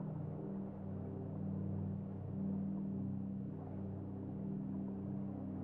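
A deep, steady rumbling drone of swirling debris fills the air.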